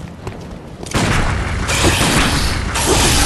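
A gunshot fires.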